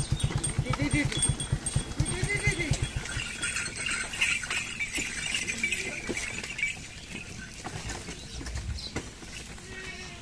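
Ox hooves clop slowly on a dirt track.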